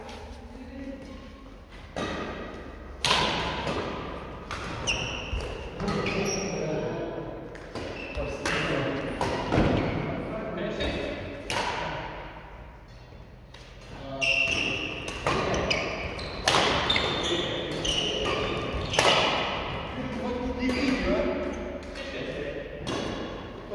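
Rackets strike a shuttlecock with sharp pops, echoing in a large hall.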